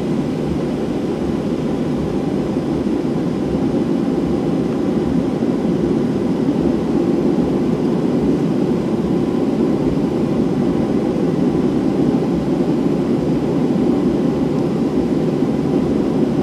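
Wheels rumble over the runway.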